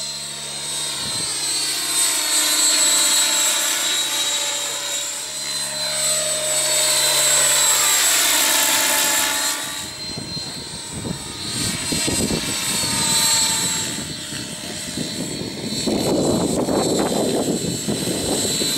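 A model helicopter's engine whines loudly overhead, its pitch rising and falling as it passes.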